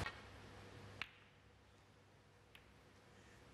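Snooker balls click together sharply.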